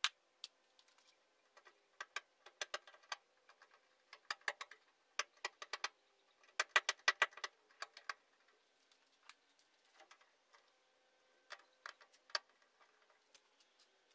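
Small metal parts click and tap against a sheet metal cabinet.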